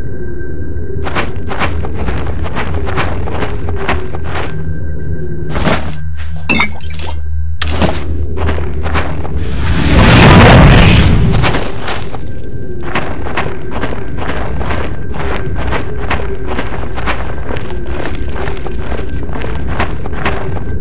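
Footsteps tread steadily on a stone floor in an echoing space.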